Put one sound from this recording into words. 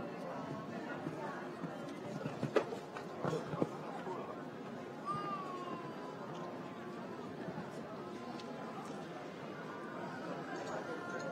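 A crowd murmurs in the stands of a large open arena.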